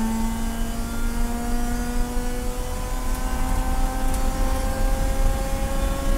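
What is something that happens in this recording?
Wind rumbles against the car as it drives fast.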